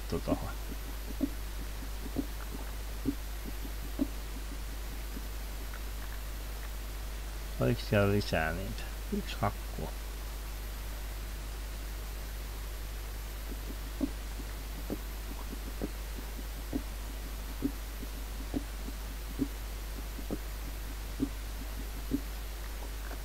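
A pickaxe strikes dirt blocks with regular soft thuds.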